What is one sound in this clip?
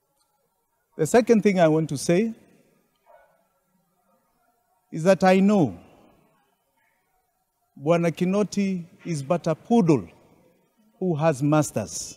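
A middle-aged man speaks firmly into microphones, in short bursts with pauses.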